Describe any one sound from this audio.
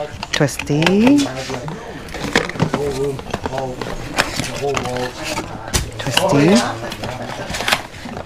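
Small cardboard boxes rustle and tap as they are handled.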